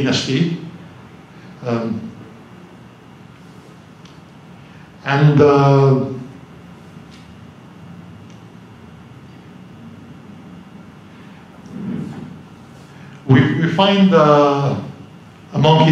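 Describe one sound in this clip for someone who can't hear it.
A man speaks slowly into a microphone over a loudspeaker, with long pauses.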